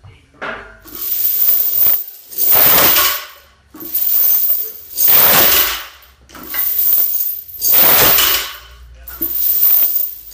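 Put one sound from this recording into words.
Metal chains clink and rattle.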